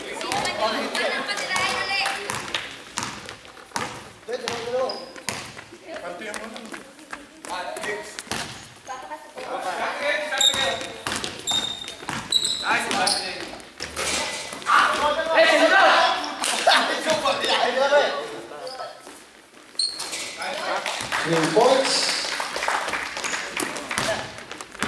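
A basketball bounces on a hard floor in a large echoing hall.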